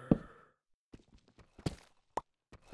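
A pickaxe chips and breaks stone.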